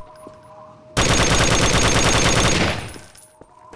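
A gun fires in a rapid, loud burst.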